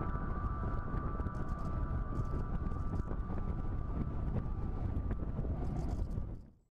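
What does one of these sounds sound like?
Wind rushes and buffets loudly past a small aircraft in flight.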